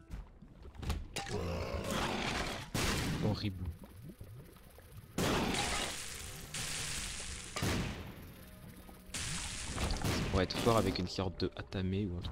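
Video game sound effects pop and burst as shots and blasts go off.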